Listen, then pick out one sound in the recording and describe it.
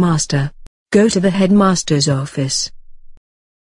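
A synthetic computer voice speaks in short, clipped phrases.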